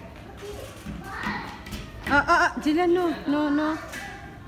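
A young child squeals and shouts excitedly nearby.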